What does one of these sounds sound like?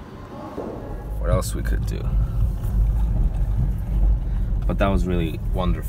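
A car engine rumbles low inside an echoing garage.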